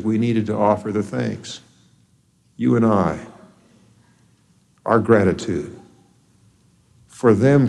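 A middle-aged man speaks slowly and deliberately into a microphone, with pauses between phrases.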